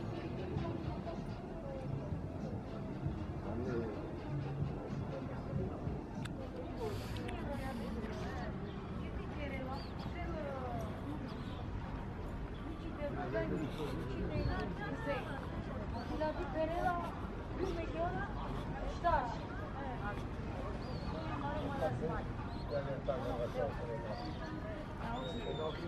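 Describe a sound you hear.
Many people chatter outdoors in the background.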